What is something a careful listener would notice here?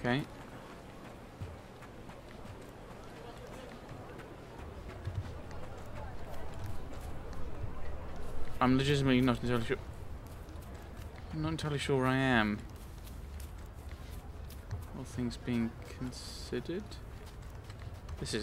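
Footsteps run on dirt and cobblestones.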